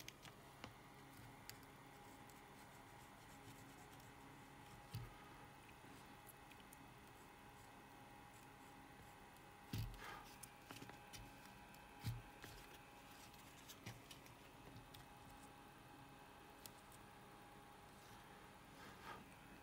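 A rubber desoldering bulb puffs softly as it is squeezed and released.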